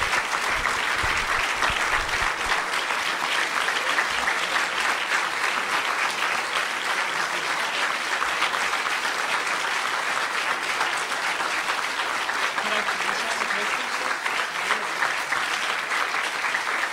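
A large crowd applauds steadily in a room.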